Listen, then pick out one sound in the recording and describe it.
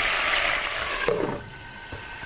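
A metal lid clanks onto a pan.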